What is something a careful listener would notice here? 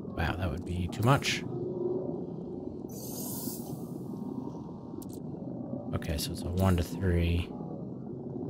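Short electronic chimes sound as menu options are picked.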